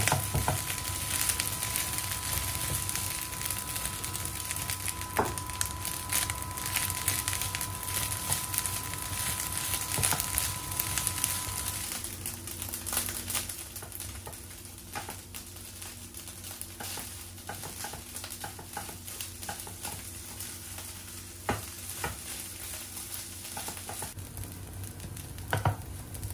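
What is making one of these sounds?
Rice sizzles in a hot frying pan.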